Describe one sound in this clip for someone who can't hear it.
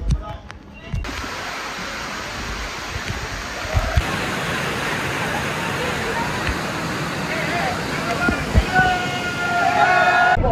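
A waterfall rushes loudly close by.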